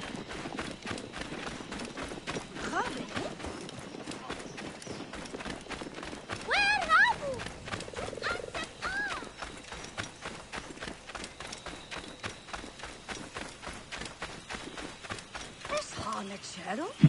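Quick footsteps run over dry ground.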